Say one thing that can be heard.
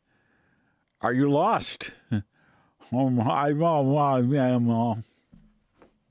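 An elderly man speaks slowly and clearly close to a microphone, drawing out his words.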